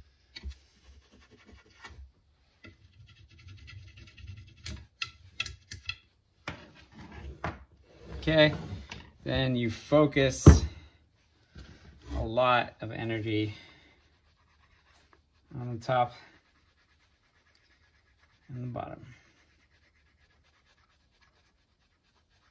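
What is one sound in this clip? An axe knocks and scrapes against a wooden board.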